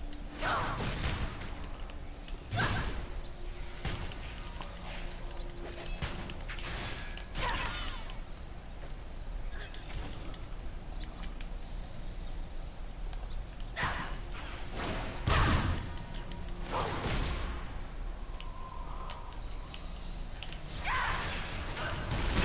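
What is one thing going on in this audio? Blades strike and whoosh in a game fight.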